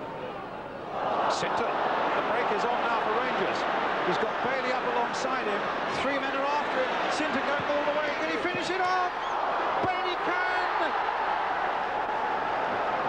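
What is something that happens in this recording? A large crowd roars loudly as a player runs at goal.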